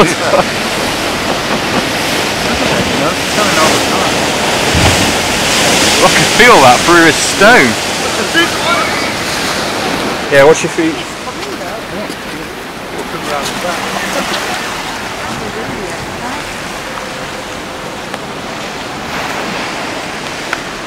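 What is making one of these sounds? Rough water roars and churns steadily.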